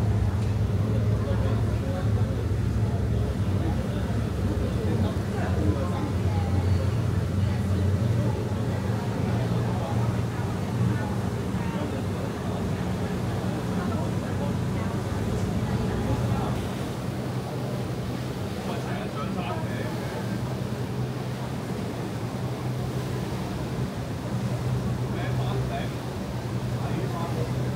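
A ferry's engine hums low and steady.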